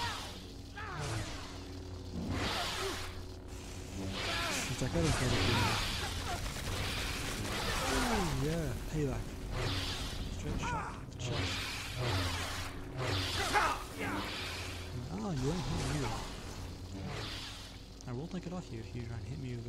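Energy blades hum and whoosh as they swing through the air.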